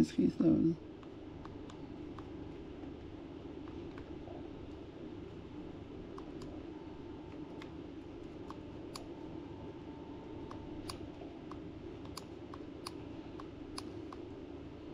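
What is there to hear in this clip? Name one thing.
Small plastic buttons click softly and repeatedly under quick thumb presses.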